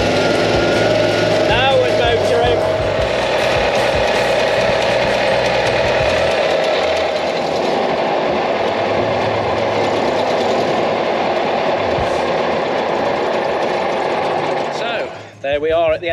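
A vehicle engine rumbles loudly and steadily.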